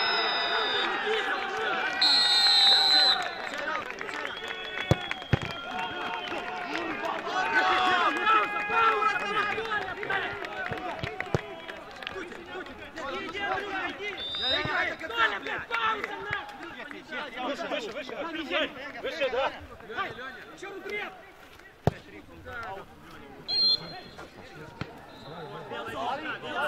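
Men shout and call out across an open field outdoors.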